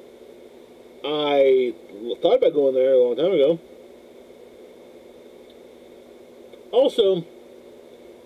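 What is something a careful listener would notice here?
A man speaks close to a microphone in short, animated bursts.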